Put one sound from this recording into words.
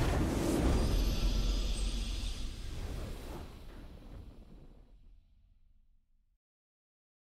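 A triumphant video game victory fanfare booms and slowly fades out.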